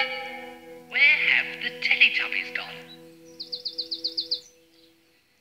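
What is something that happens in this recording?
A voice speaks cheerfully through a loudspeaker.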